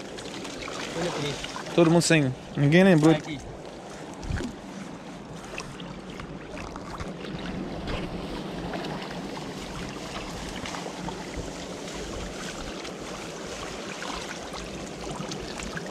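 Water splashes and sloshes as people wade through a shallow stream.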